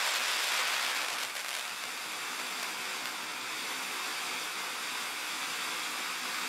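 A firework fountain hisses and crackles steadily as it sprays sparks.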